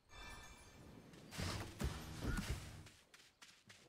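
Light footsteps patter on grass.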